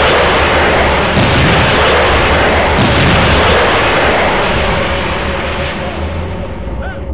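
A loud roar of fire and blasts fills the air and slowly fades.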